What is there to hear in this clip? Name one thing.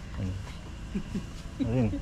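A woman laughs nearby.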